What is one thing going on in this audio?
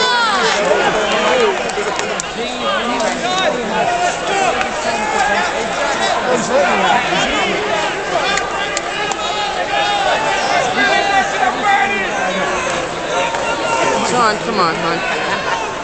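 A large crowd shouts and cheers in a big indoor arena.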